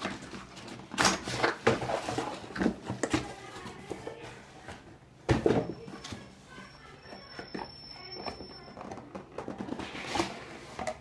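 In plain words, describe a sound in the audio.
A cardboard box is handled, scraping and thumping.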